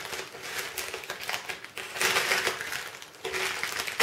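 A knife slices through a plastic mailing bag.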